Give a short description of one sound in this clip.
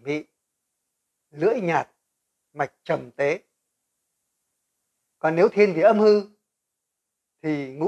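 An elderly man speaks calmly and cheerfully into a close microphone, in short phrases with pauses.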